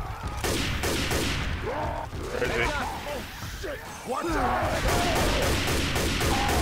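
A rifle fires sharp shots in quick succession.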